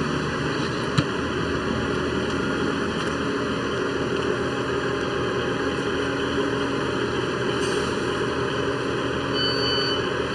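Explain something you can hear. A diesel train rumbles steadily close by.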